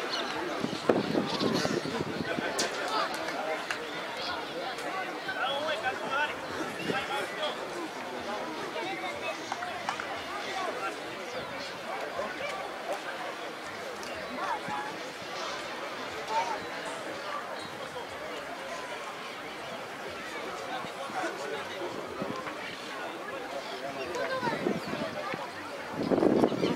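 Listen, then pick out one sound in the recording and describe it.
Several men talk and call out at a distance outdoors.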